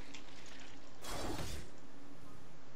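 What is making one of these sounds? A game character teleports away with a loud magical whoosh.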